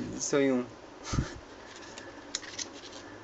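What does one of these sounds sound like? Paper pages rustle as a booklet's pages are turned.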